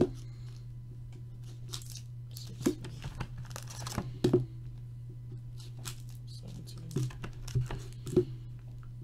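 Foil card packs crinkle and rustle as hands handle them.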